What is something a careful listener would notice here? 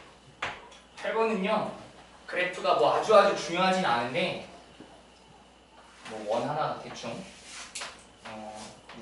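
A young man speaks out loud nearby.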